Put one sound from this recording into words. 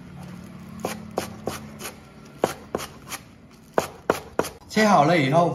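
A knife chops quickly against a cutting board.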